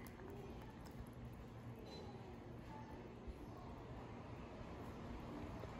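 Hot water pours from a kettle into a glass mug.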